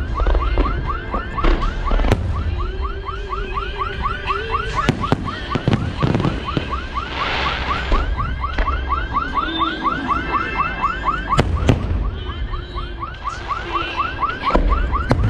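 Rockets whistle as they shoot up.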